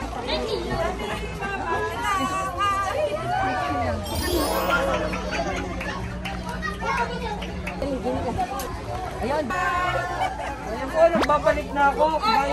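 A crowd of women chatter and call out.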